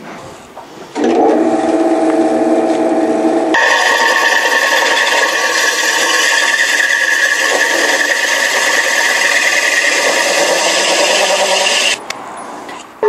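A drill press whirs as it runs.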